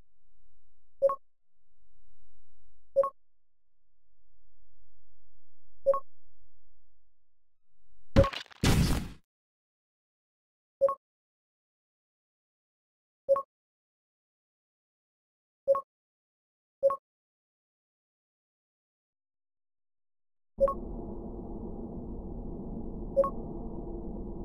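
A short electronic chime sounds again and again.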